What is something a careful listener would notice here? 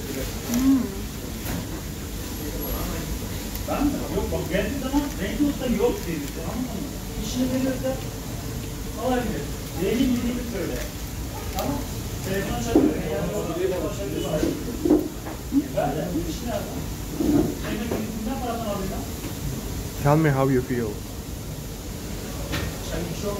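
Paper wrapping crinkles.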